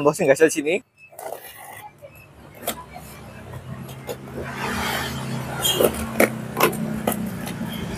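Cardboard rustles and scrapes as hands handle a box.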